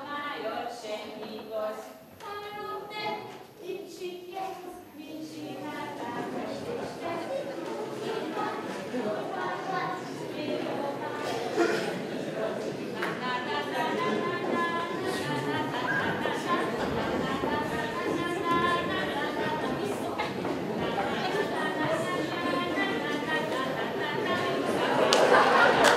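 Young children sing together in a large echoing hall.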